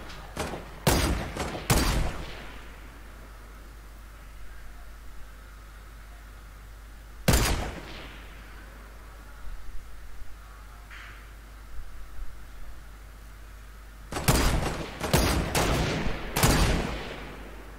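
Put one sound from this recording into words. A rifle fires loud single shots that ring out and fade.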